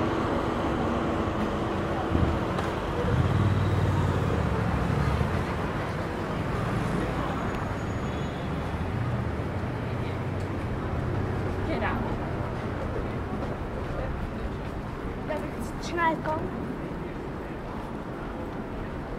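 Footsteps and the murmur of a busy street fill the open air.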